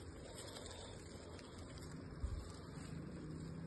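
Leaves rustle as a hand brushes against an apple branch.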